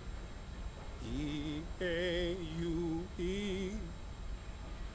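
A man laughs loudly with a sing-song voice.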